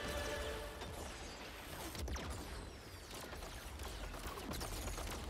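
Laser beams zap and hum.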